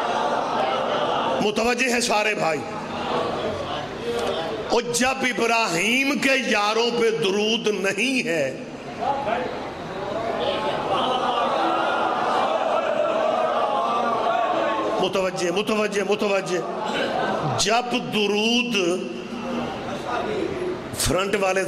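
A middle-aged man speaks with passion into a microphone, his voice ringing out over loudspeakers.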